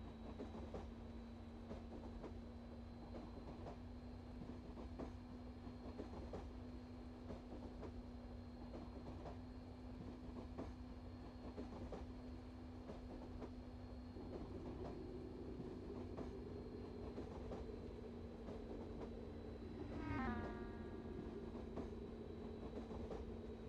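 Train wheels click over rail joints.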